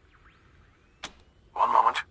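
A short interface click sounds.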